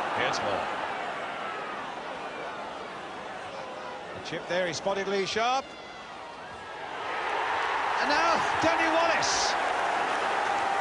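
A large crowd murmurs in an open stadium and then swells into a loud roar.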